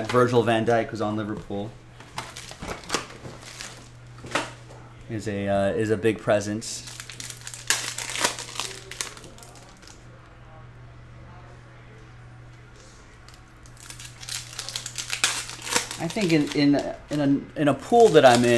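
Trading card wrappers crinkle and rustle as they are torn open.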